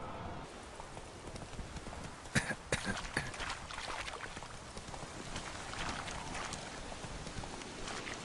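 A horse's hooves thud on the ground.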